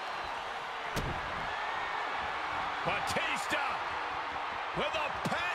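Blows land with sharp thuds as wrestlers strike each other.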